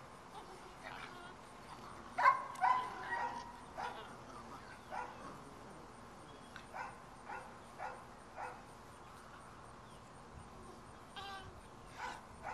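Puppies yip and bark in short bursts.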